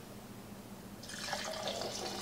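Coffee pours from a pot into a mug.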